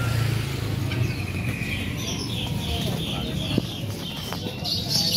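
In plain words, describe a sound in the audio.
A caged bird chirps repeatedly close by.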